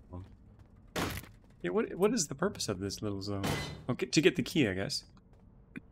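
Sharp hits and thuds land during a scuffle.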